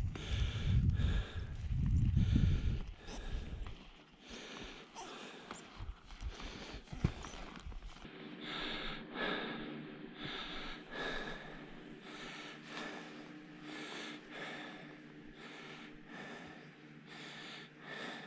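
Skis scrape and crunch rhythmically over snow.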